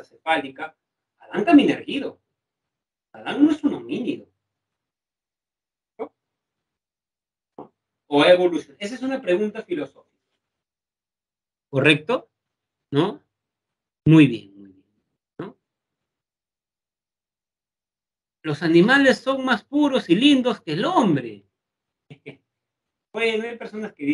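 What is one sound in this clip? A young man speaks calmly into a microphone over an online call, with pauses.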